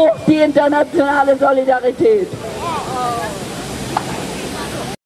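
A small crowd murmurs in the open air.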